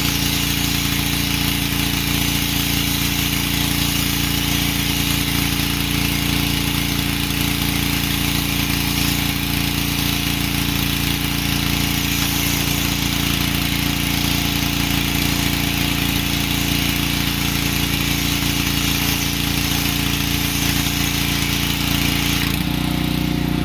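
A high-pressure water jet hisses against a truck.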